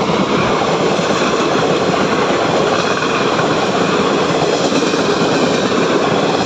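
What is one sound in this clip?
A passenger train rumbles past close by, its wheels clattering on the rails.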